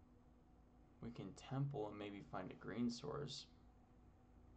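A man speaks casually close to a microphone.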